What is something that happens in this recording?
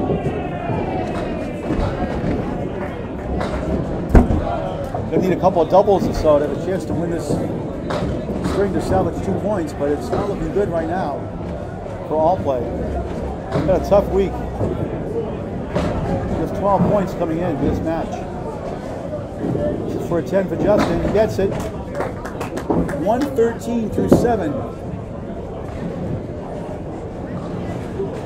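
A bowling ball rolls down a wooden lane with a low rumble.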